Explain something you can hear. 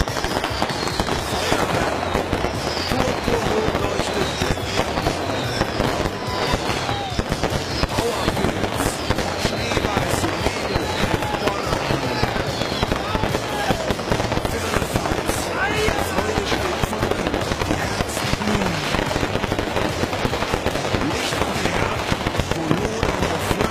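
Fireworks whistle as they shoot up.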